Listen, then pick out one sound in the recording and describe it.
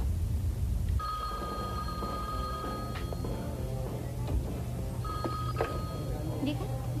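A telephone rings.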